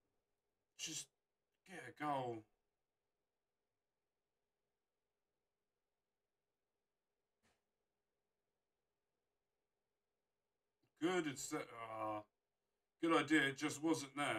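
A young man speaks close to a microphone in short bursts.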